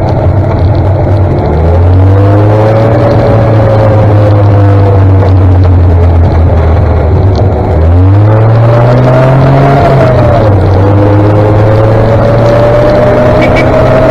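A heavy vehicle engine drones close by, its pitch rising and dropping with gear changes.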